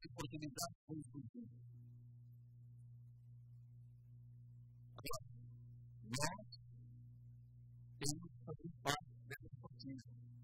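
A man speaks with animation into a microphone, heard through loudspeakers, pausing between phrases.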